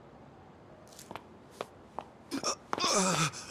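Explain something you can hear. A woman's high heels click on pavement.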